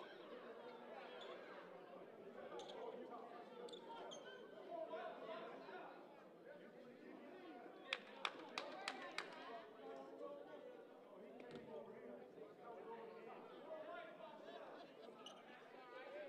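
A crowd of spectators murmurs in a large hall.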